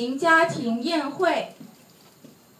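A young boy speaks loudly into a microphone.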